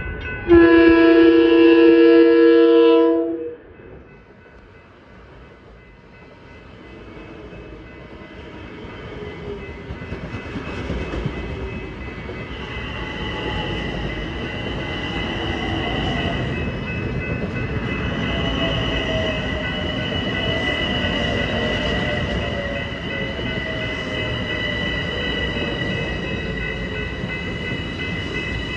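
A crossing bell rings steadily.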